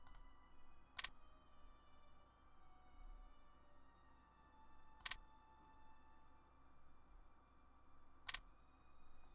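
Short sharp clicks sound as menus open.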